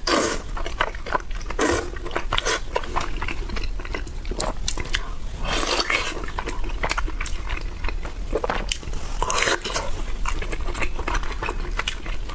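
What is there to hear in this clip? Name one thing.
A woman chews and slurps food close to a microphone.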